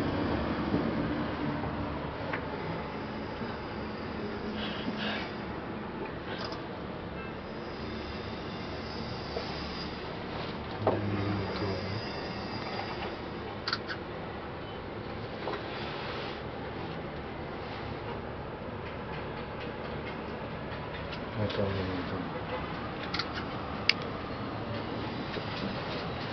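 A cable car hums steadily as it glides along its cable.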